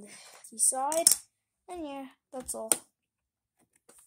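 A circuit card clatters down onto a hard floor.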